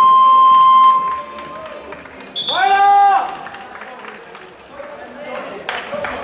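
A man speaks firmly to a group nearby, in a large echoing hall.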